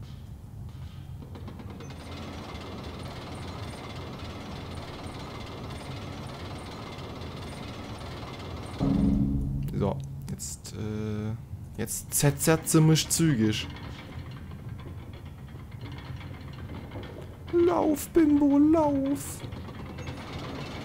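Large gears rumble and grind steadily.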